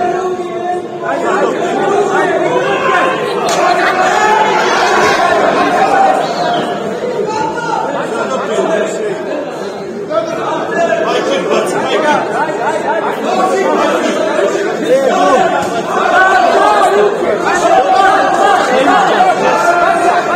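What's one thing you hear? A crowd shouts and cheers loudly in a large hall.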